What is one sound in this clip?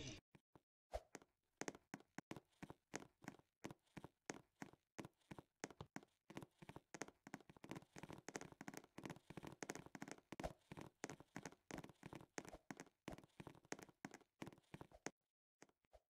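Quick light footsteps patter on hard ground.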